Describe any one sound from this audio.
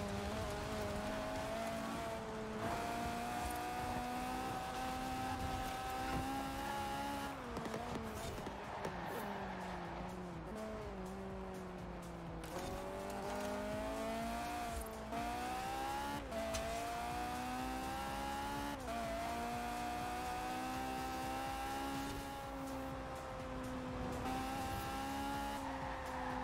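A car engine roars at high revs, rising in pitch and dropping sharply at each gear change.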